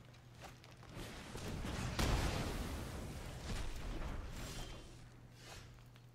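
A game spell effect whooshes and rumbles, then fades.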